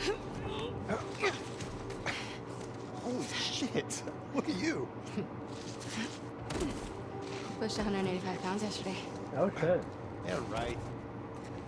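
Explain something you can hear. A young man answers with amusement.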